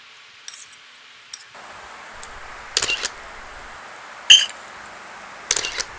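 Metal utensils clink and scrape against a plate.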